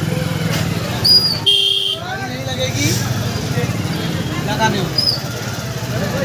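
Motorcycle horns beep briefly.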